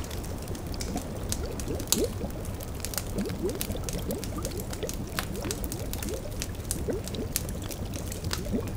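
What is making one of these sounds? A cauldron bubbles and gurgles.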